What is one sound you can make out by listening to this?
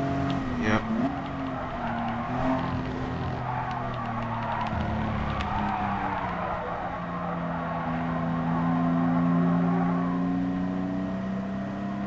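Tyres squeal and scrub through a corner.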